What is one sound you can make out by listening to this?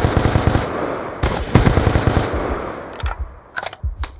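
Rapid gunfire rattles in loud bursts.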